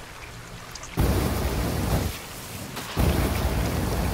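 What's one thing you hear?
A flamethrower roars loudly in bursts.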